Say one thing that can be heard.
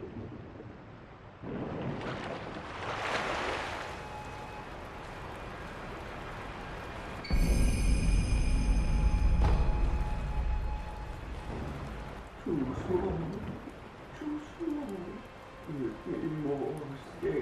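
Rain patters steadily on water.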